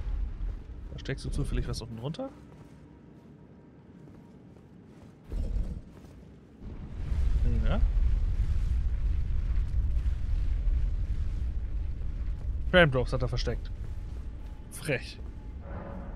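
A man talks animatedly and close into a microphone.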